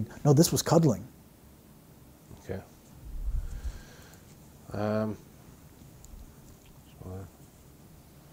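A middle-aged man speaks close to a microphone in short, halting bursts with long pauses.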